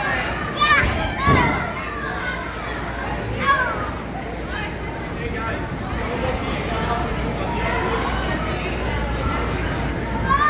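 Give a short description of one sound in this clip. Children's feet thump on a bouncy inflatable floor.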